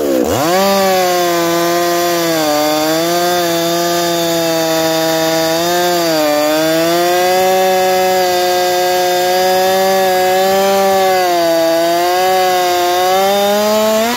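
A chainsaw engine revs up loudly and roars steadily, dipping and rising in pitch as it cuts.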